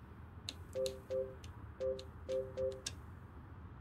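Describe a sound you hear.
Short electronic beeps chime as menu items are selected.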